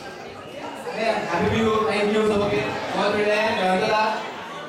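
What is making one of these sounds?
A man sings loudly into a microphone through loudspeakers.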